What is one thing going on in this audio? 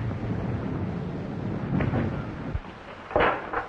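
An explosion rumbles with a deep roar.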